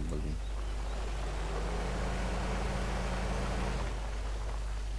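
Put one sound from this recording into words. A car engine revs up briefly.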